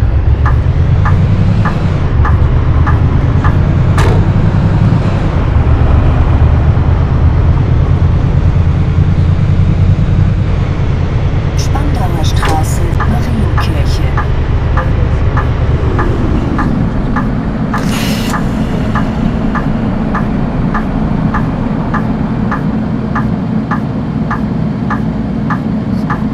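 A bus engine rumbles loudly, then drops to a low idle as the bus comes to a stop.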